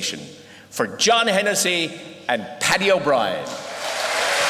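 An elderly man announces loudly through a microphone in an echoing hall.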